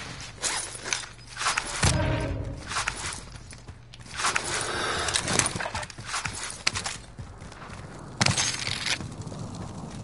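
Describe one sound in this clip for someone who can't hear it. Game sounds crackle and boom in bursts.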